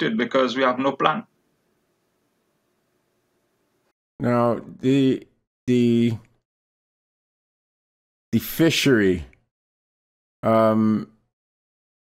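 An elderly man speaks calmly over an online call, in short phrases with pauses.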